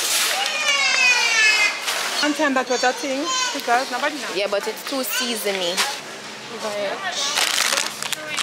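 Plastic snack wrappers crinkle as they are handled.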